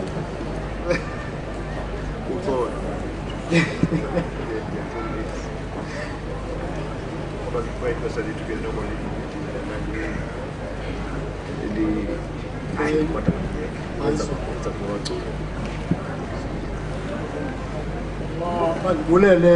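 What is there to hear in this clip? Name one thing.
A man speaks through a microphone and loudspeakers outdoors.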